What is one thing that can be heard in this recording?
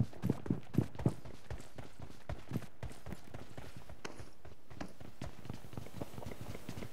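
Quick footsteps thud steadily on the ground.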